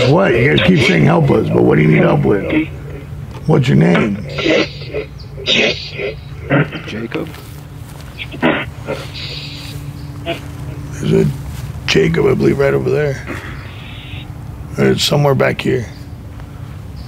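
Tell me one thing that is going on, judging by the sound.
A man talks with animation outdoors, close by.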